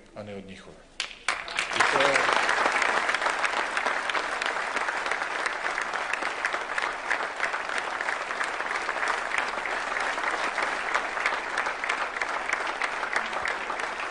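A crowd applauds steadily.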